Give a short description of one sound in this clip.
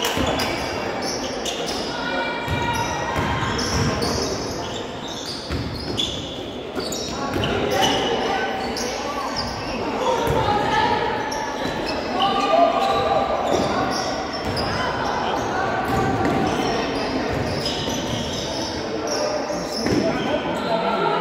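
A basketball thumps as it is dribbled on the floor.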